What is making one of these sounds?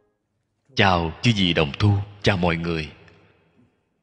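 An elderly man speaks calmly and warmly into a close microphone.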